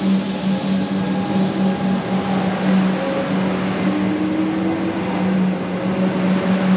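Train wheels squeal faintly on the rails.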